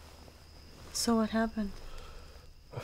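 A middle-aged woman speaks softly, close by.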